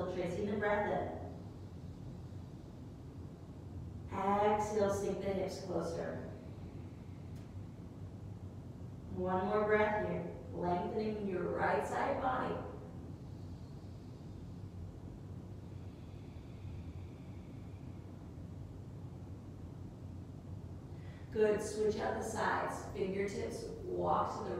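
A woman speaks calmly and softly, in short phrases with pauses.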